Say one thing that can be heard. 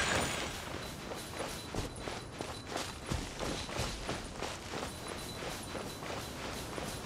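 Quick footsteps run through grass.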